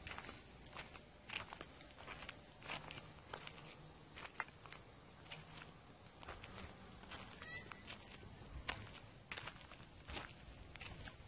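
Footsteps crunch on gravelly ground.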